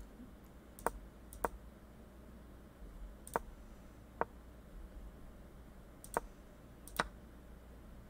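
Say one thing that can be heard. A short wooden click sounds each time a chess move is played.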